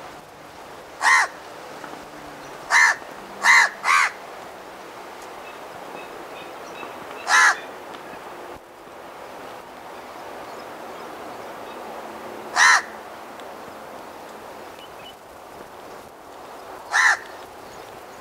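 A crow caws loudly and harshly several times, in short separate calls.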